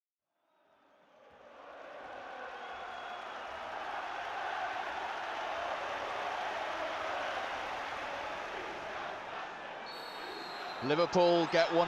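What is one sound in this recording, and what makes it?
A large crowd cheers and applauds in a stadium.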